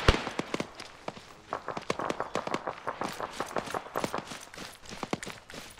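Footsteps crunch quickly on dry ground.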